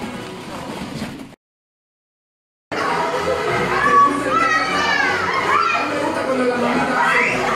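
Children laugh and shout excitedly.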